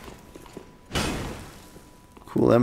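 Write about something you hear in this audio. A heavy weapon swings with a whoosh.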